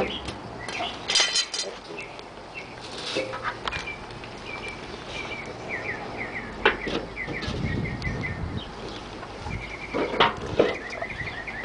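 A metal lid clanks onto a metal can.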